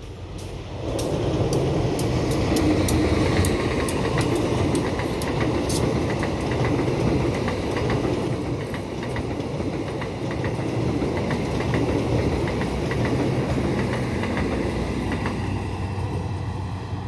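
A passenger train rumbles past close by.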